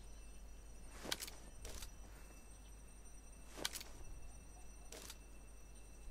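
Rifle shots crack sharply a few times.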